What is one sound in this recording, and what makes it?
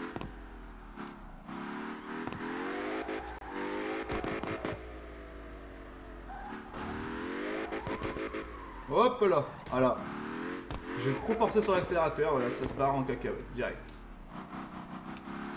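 A car engine revs high and roars, rising and falling in pitch.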